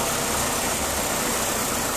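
A diesel engine runs with a steady, loud rumble.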